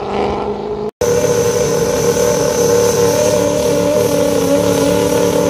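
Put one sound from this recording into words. An engine idles steadily nearby.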